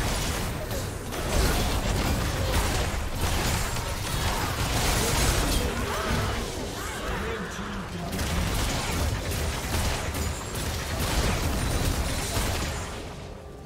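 Spell effects and weapon hits crackle and clash in a busy fight.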